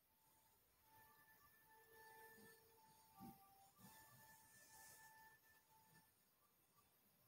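Short electronic menu beeps sound from a television.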